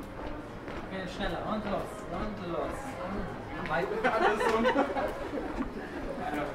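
Adults chat nearby in an outdoor street.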